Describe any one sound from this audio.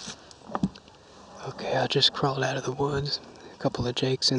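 Dry grass rustles and crackles close by.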